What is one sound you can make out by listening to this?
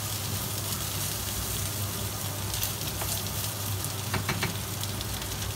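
A wooden spatula scrapes and stirs rice in a metal pan.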